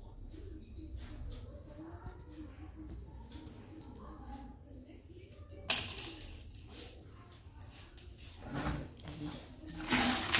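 Hands crumble and scrape a moist mixture against a metal plate.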